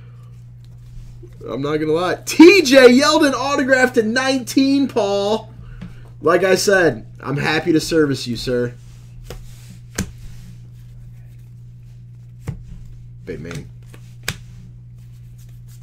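Trading cards flick and rustle as they are shuffled in hand.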